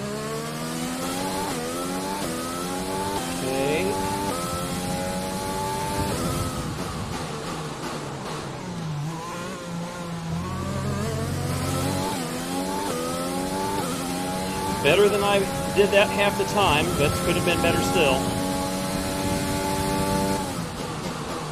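A racing car engine roars and revs up through the gears, dropping in pitch at each gear change.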